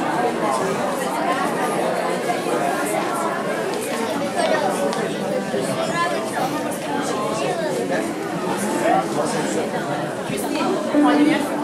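A choir of children sings together.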